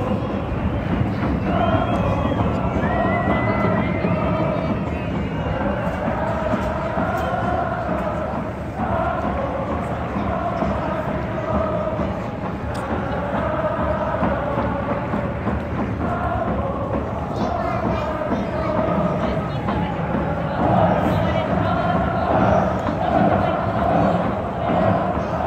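A huge stadium crowd chants and sings together loudly, echoing around the stands.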